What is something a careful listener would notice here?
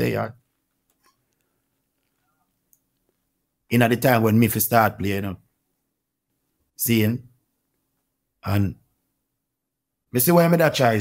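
A young man speaks calmly into a nearby microphone, in short bursts with pauses.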